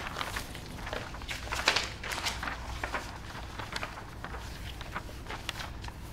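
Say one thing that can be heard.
Sheets of paper rustle as pages are turned.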